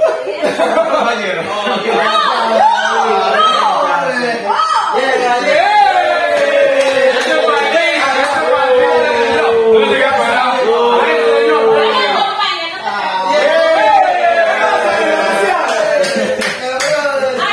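Young men laugh loudly close by.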